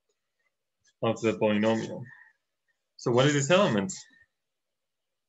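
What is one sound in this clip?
A young man speaks calmly through a webcam microphone.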